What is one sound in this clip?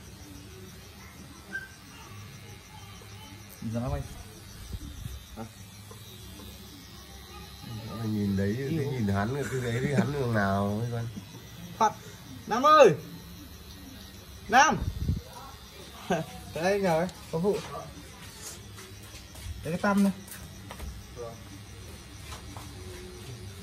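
A tattoo machine buzzes steadily.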